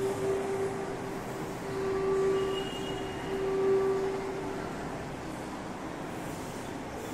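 Chalk scrapes softly across a board.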